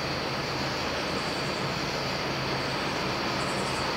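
A train rumbles as it approaches in the distance.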